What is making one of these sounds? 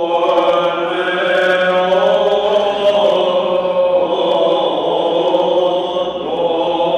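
A man chants in a long, sustained voice through a microphone in an echoing hall.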